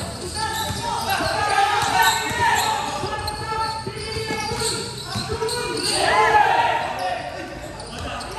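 A crowd of young spectators shouts and chatters nearby.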